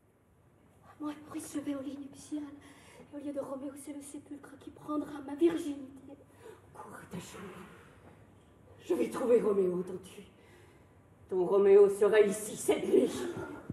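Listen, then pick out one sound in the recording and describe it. An older woman sings in long, sustained phrases.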